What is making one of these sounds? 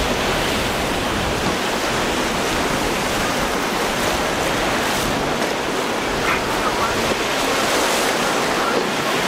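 Water splashes and sprays against a boat's hull.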